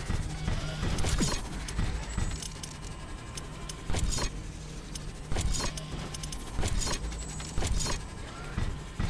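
Game interface clicks sound as menus open.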